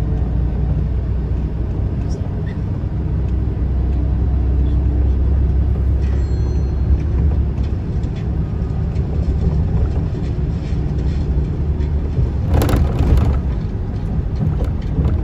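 A vehicle's engine hums low and steady from inside, with road noise rumbling throughout.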